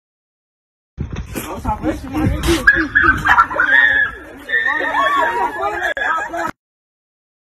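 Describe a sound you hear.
Young men shout and laugh outdoors.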